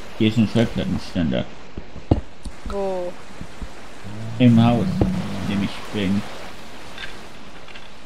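A pickaxe chips at stone in short repeated knocks.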